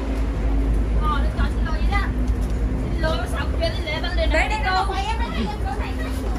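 Young women chatter close by.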